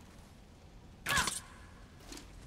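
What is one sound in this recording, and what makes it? A thrown axe whooshes back through the air.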